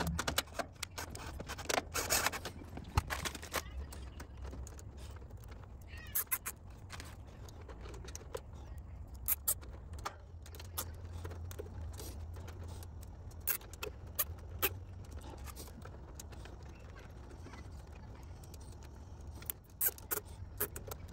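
Wires and metal terminals click and rattle under handling.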